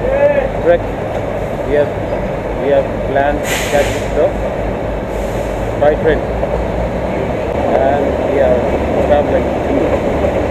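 A man speaks close by, calmly.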